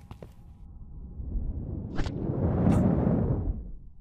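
Feet clatter on wooden ladder rungs.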